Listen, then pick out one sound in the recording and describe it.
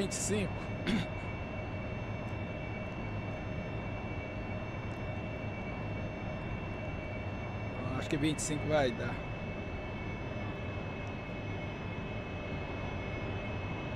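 A Harrier jump jet's engine hums and whines steadily, heard from inside the cockpit.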